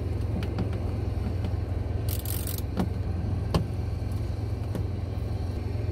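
A metal hex key clicks and scrapes against a plastic panel.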